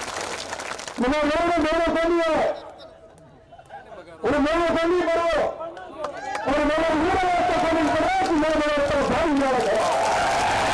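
A young man speaks forcefully into a microphone through loudspeakers, his voice echoing outdoors.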